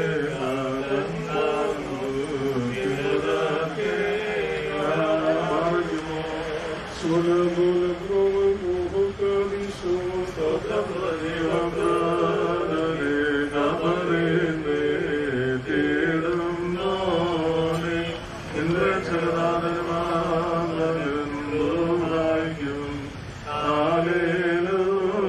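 Several men chant a prayer together in a steady, sung tone.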